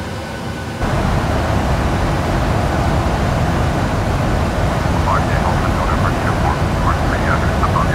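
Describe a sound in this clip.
A jet engine roars steadily with a low rumble.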